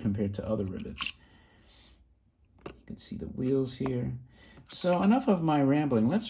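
A tin toy rattles and clicks as it is handled.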